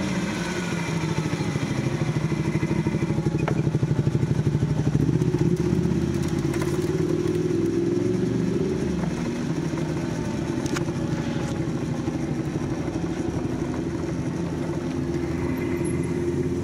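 A motorcycle engine revs loudly up close, rising and falling as the rider changes gear.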